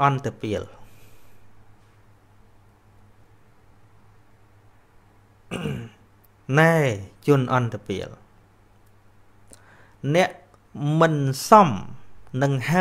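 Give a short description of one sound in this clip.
A man speaks into a microphone in short, drawn-out phrases with pauses between them.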